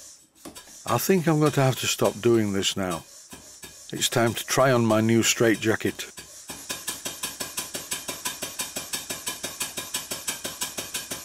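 A small steam engine chuffs and clicks in a quick, steady rhythm.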